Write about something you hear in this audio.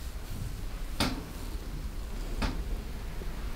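Sharp cracks snap now and then.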